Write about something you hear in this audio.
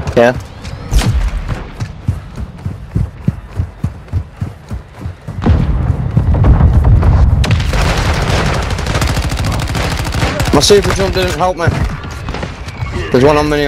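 Gunfire rattles in quick bursts.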